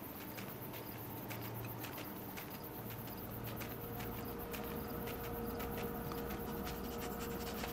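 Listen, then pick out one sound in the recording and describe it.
Wind blows steadily.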